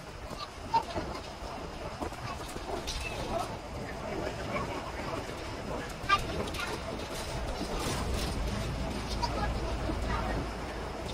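Road noise rumbles beneath a moving bus.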